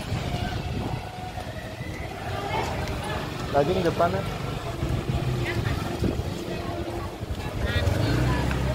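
Many people talk in a busy crowd nearby.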